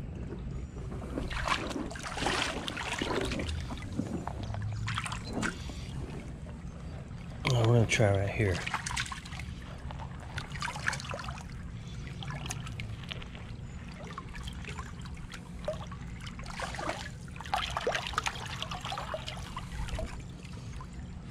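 Shallow water trickles and babbles over stones.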